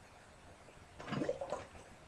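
A glass bottle plunges into water with a splash.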